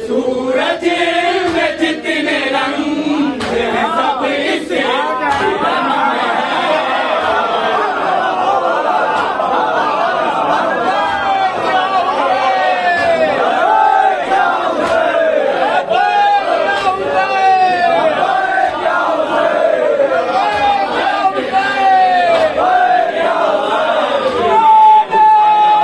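A man chants loudly through a microphone over loudspeakers.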